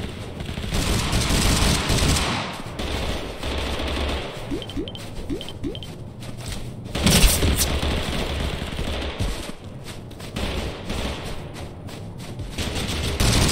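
Footsteps crunch over snow.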